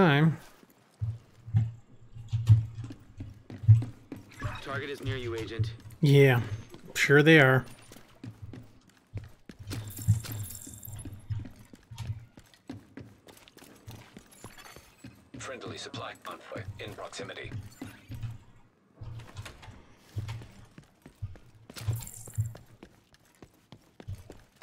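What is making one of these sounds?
Footsteps thud steadily across a metal floor.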